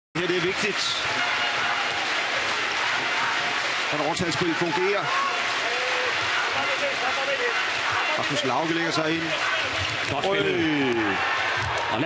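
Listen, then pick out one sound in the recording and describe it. A large crowd roars and cheers in a big echoing hall.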